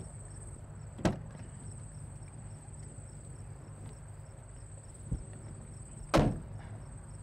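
A car door handle clicks.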